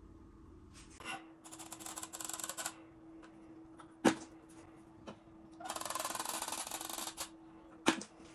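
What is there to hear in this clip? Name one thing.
A caulk gun squeezes out sealant with a hiss.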